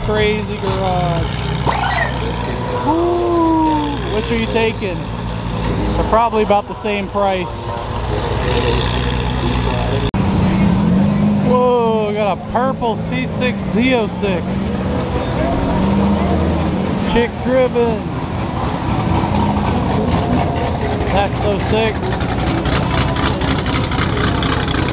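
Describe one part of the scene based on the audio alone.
A sports car engine idles with a low, steady rumble.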